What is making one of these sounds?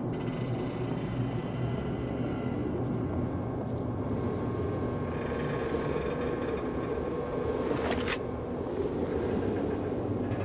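Heavy footsteps tread on concrete and metal.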